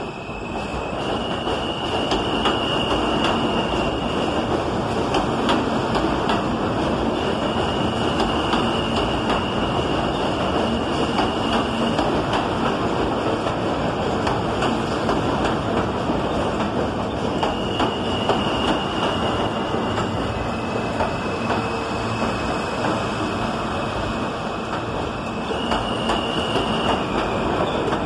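Metal wheels squeal high on the rails now and then.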